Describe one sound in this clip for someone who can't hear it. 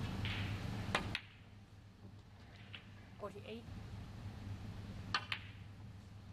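A cue tip strikes a snooker ball with a sharp click.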